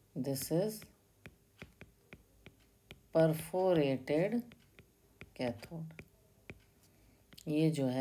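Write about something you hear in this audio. A stylus taps and scratches on a tablet.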